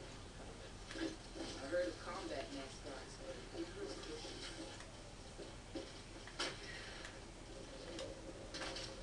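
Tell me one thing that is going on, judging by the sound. Gunshots crack through a television speaker.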